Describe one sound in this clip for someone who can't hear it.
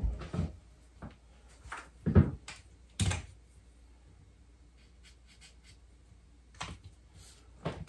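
A metal rod taps and scrapes against a wooden wall.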